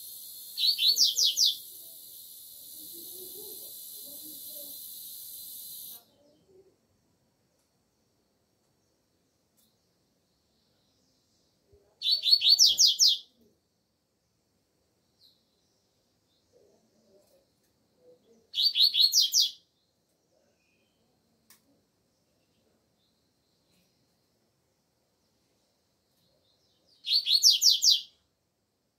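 A double-collared seedeater sings short, bright phrases in bursts.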